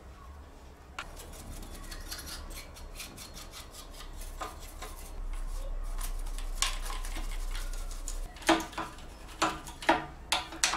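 A brush scrubs dust out of a metal box with quick bristly strokes.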